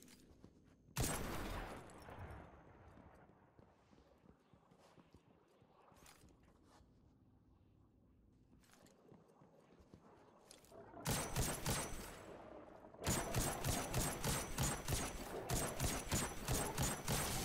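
Gunshots fire in quick bursts, loud and close.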